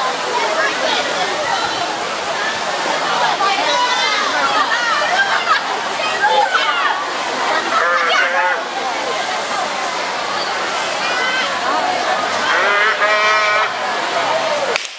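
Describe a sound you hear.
A large crowd of children chatters and shouts outdoors.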